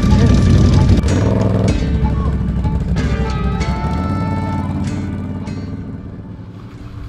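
An off-road quad engine roars and revs loudly.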